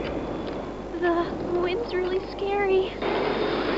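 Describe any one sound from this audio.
A high, childlike voice whimpers in fear.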